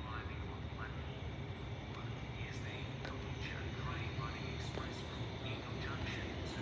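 A train rumbles as it approaches in the distance.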